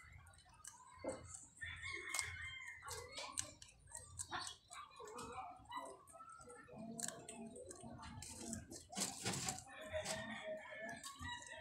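Rabbits munch and crunch on fresh greens close by.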